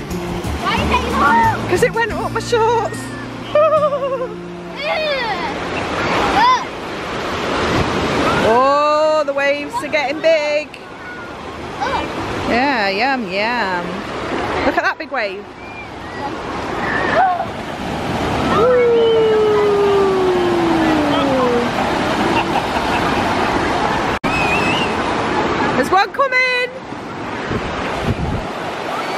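Small waves break and wash on the shore.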